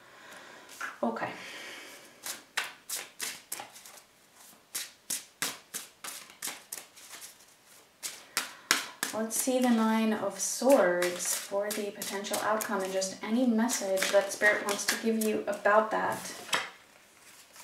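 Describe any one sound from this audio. Playing cards shuffle and riffle in a pair of hands.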